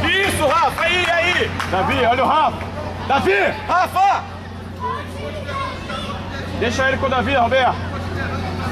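A crowd of spectators shouts and cheers outdoors.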